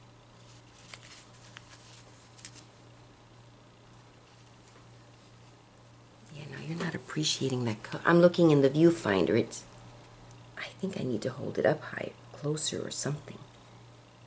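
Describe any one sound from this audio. Fabric rustles softly as it is handled.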